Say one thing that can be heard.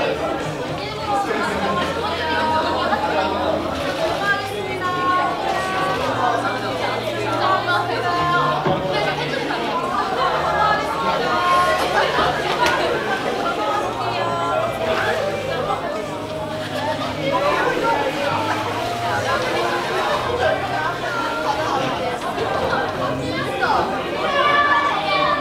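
A crowd murmurs in a large echoing room.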